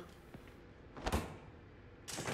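A can drops with a thud into a vending machine tray.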